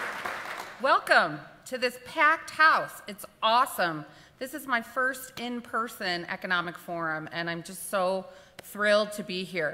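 A woman speaks with animation into a microphone to an audience.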